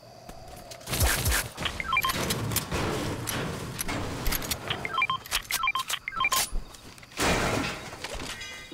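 Building pieces thud into place with sharp knocks.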